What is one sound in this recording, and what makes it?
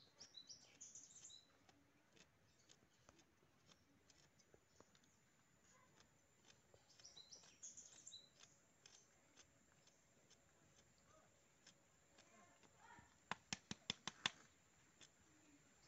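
A knife scrapes against a hide in quick, rasping strokes.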